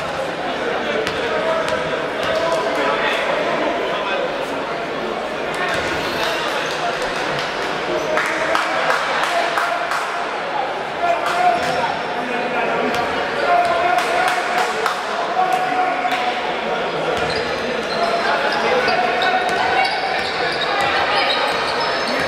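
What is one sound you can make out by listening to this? A crowd cheers and chatters loudly in a large echoing hall.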